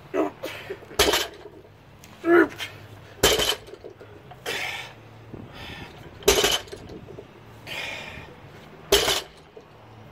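A loaded barbell thuds onto the ground.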